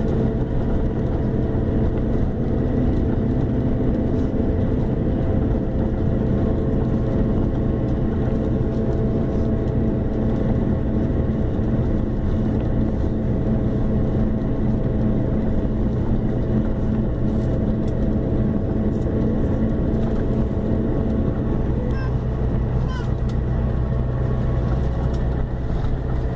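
A bus engine drones steadily from inside the cabin.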